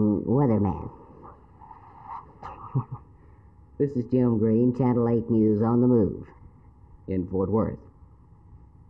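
A man speaks calmly into a handheld microphone, close by.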